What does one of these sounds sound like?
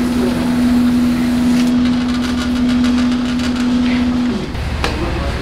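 A machine hums steadily, then stops.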